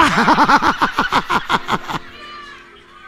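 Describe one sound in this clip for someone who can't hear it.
A middle-aged man laughs heartily through a microphone.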